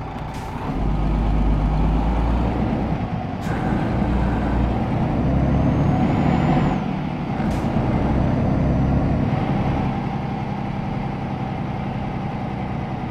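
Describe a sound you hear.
A truck engine rumbles steadily as the truck drives slowly and turns.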